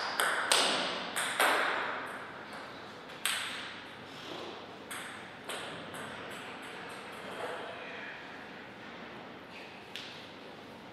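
A table tennis ball bounces sharply on a table in an echoing hall.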